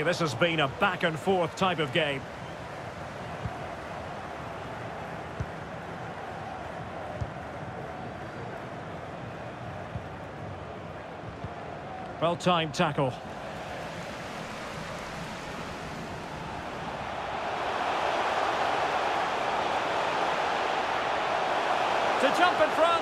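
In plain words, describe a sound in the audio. A large stadium crowd roars steadily, swelling louder toward the end.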